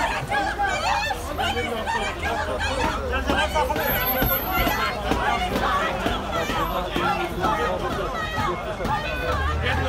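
A crowd of men and women shout and chant loudly outdoors.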